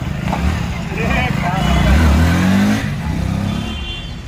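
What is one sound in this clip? A motorcycle revs and rides off.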